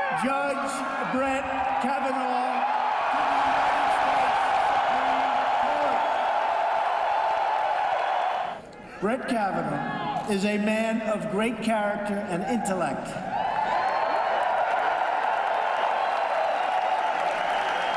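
A large crowd cheers and chants loudly in a big echoing hall.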